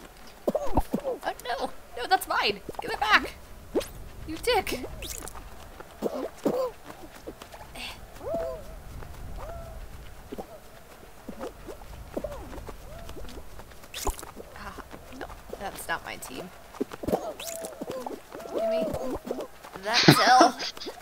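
Cartoonish game sound effects pop and jingle.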